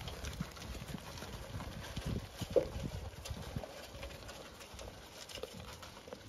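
Sheep munch and crunch grain close by.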